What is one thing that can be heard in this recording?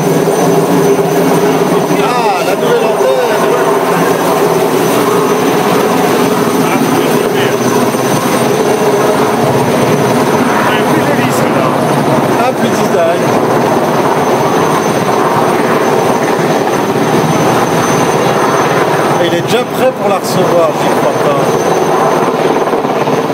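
A helicopter's rotor thuds loudly and steadily overhead.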